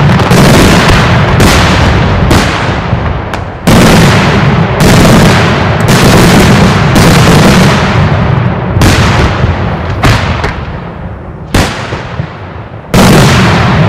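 Loud bangs of exploding fireworks boom and echo outdoors.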